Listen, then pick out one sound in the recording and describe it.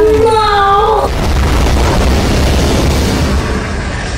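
Jet thrusters roar.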